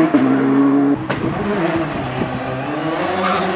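A rally car approaches at speed.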